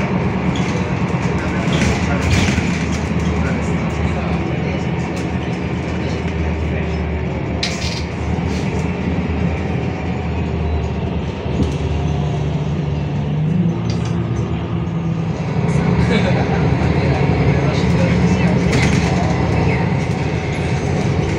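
The bus body rattles and clatters as it drives.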